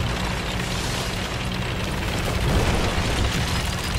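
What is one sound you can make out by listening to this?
A tank crashes through a wooden structure with a loud splintering crunch.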